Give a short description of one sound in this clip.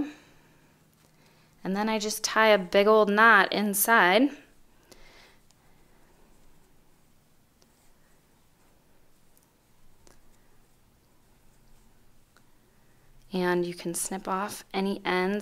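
Soft yarn rustles faintly as hands work it.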